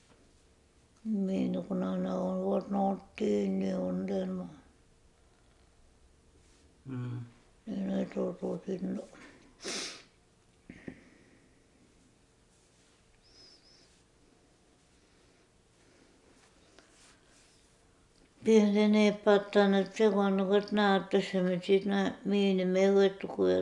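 An elderly woman speaks calmly and slowly, close by, with long pauses.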